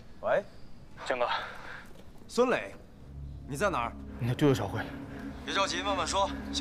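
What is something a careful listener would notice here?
A young man talks on a phone with urgency.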